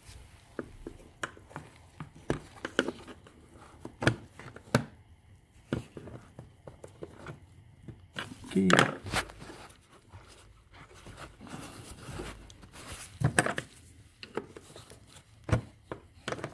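A metal pick clicks and taps against hard plastic.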